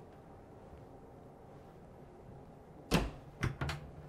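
A cabinet door clicks open.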